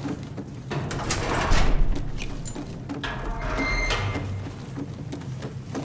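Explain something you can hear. A heavy metal door handle clanks and the door creaks open.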